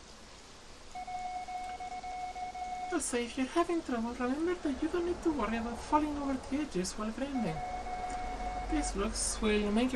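Dialogue text ticks out electronically.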